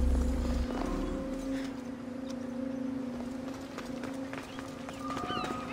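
Footsteps run across stone and dirt.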